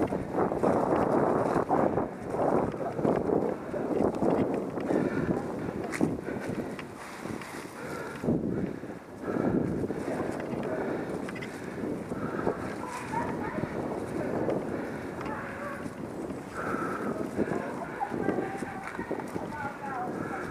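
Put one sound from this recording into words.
Bicycle tyres crunch and rattle over dry leaves and dirt on a trail.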